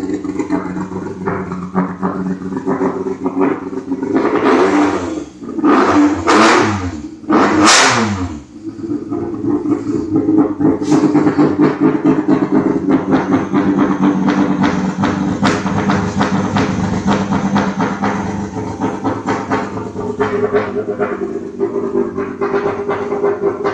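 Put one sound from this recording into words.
A tuned car engine idles with a lumpy, throbbing rumble close by.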